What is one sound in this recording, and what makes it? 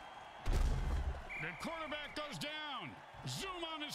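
Armoured players crash together in a heavy tackle.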